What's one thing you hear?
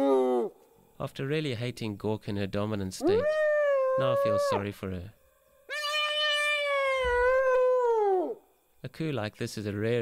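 Hyenas cackle in fast, rapid giggles.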